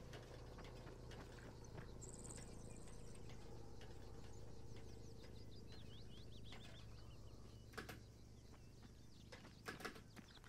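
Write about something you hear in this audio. Boots clank softly on a metal ladder.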